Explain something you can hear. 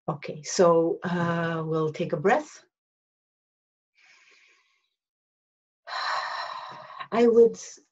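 A middle-aged woman speaks calmly and close by, with pauses.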